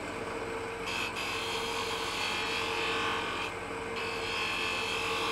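A lathe hums steadily.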